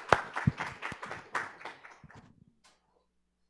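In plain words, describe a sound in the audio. Applause rings out in a large echoing hall.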